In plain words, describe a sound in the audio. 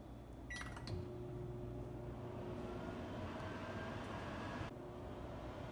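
A microwave oven hums steadily while running.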